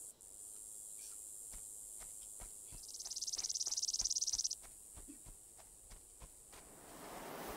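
Footsteps tread softly through grass.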